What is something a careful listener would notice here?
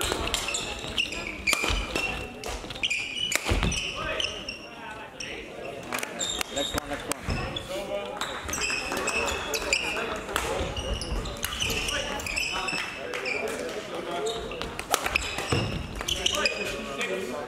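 Shoes squeak on a hall floor.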